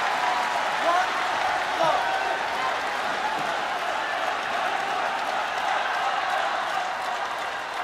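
A shuttlecock is struck sharply with a racket.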